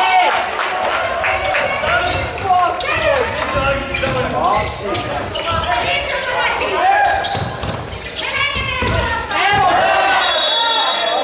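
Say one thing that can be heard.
A ball is kicked on an indoor court.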